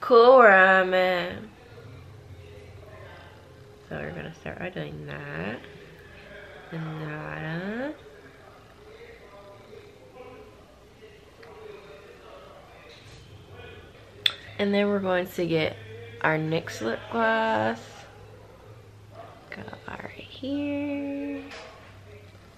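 A young woman talks casually and close up, in short bursts.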